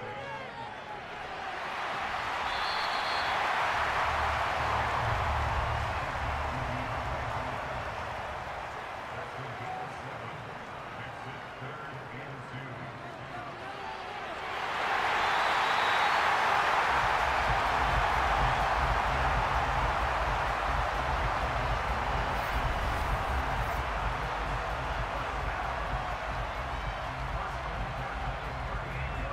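A large stadium crowd roars and cheers, swelling and fading.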